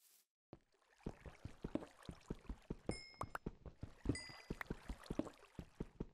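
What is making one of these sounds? A pickaxe chips rapidly at stone with quick, even knocks.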